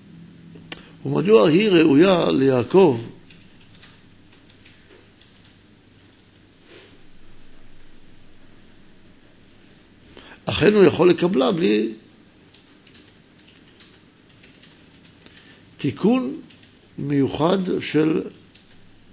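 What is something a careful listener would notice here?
A middle-aged man speaks calmly into a microphone in short phrases with pauses.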